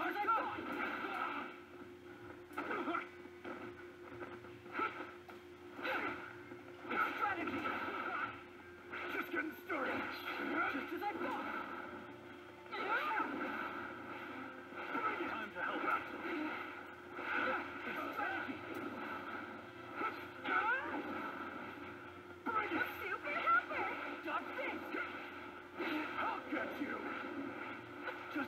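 Video game explosions and punches crash and boom over and over.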